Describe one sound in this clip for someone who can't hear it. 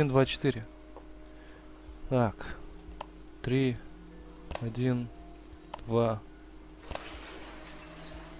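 Buttons click as they are pressed on a panel.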